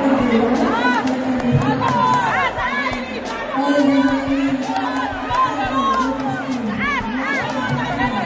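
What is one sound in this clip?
Young children cheer and shout loudly.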